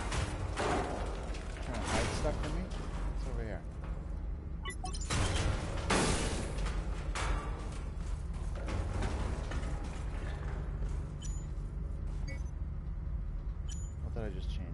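Heavy metal footsteps clank on a metal floor.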